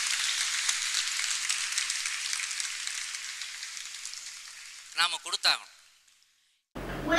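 An audience applauds steadily and the clapping slowly fades away.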